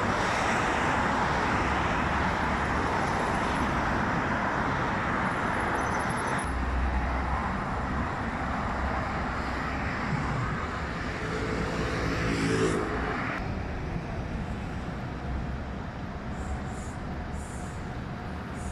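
Traffic roars steadily past on a busy road.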